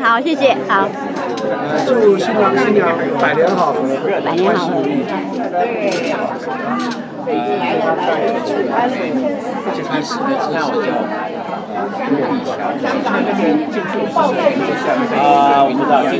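Several elderly men talk and laugh together close by.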